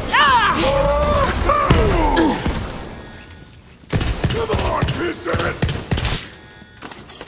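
Gunfire bursts rapidly in a video game.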